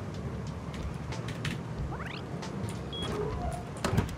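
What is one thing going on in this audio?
Keypad buttons beep.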